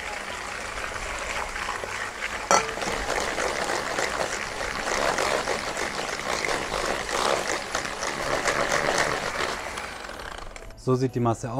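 An electric hand mixer whirs steadily.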